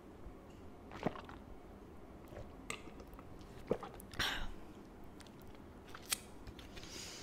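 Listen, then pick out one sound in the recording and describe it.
A young woman makes soft, wet mouth clicks very close to a microphone.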